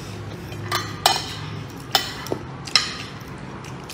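A spoon clinks against a plate.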